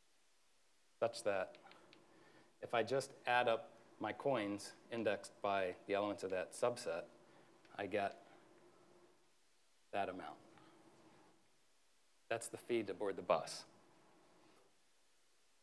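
A man speaks calmly into a microphone, pausing often.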